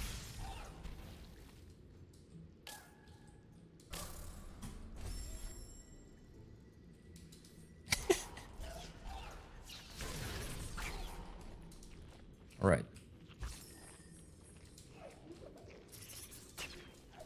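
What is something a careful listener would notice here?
Video game sound effects chime and whoosh.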